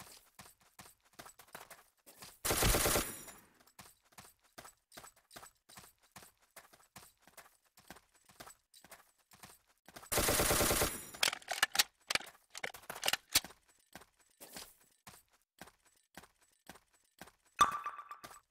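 Footsteps patter quickly and evenly.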